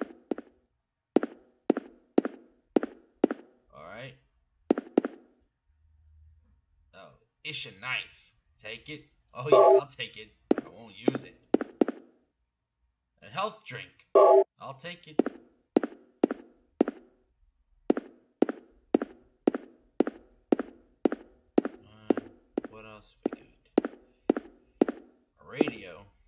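Footsteps thud steadily on a hard floor.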